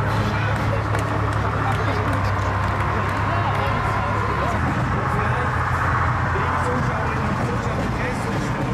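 Armoured vehicle engines rumble loudly as they drive past close by.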